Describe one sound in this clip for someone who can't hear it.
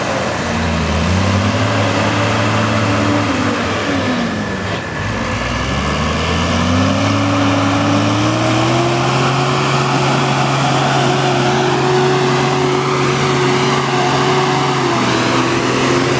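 A truck engine roars and revs up and down as it churns through deep mud.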